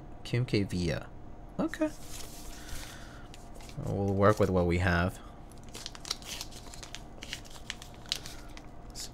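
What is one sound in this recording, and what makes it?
Plastic sheets rustle and crinkle as they are handled.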